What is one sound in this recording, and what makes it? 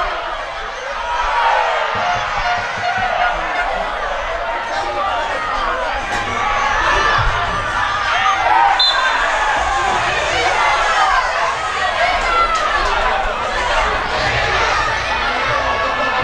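A crowd of spectators shouts and calls out outdoors.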